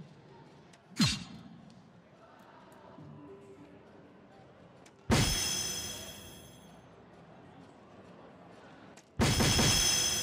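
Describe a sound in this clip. Darts thud sharply into an electronic dartboard.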